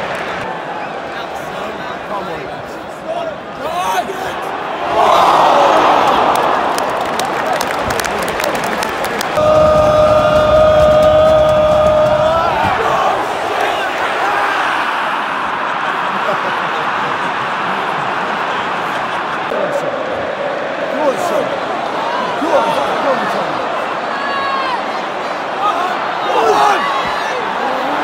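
A large stadium crowd roars and cheers all around.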